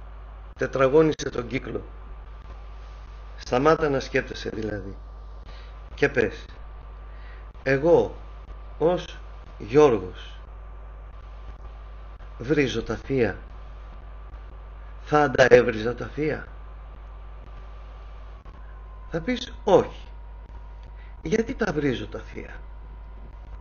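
A middle-aged man speaks calmly into a microphone, in short phrases with pauses.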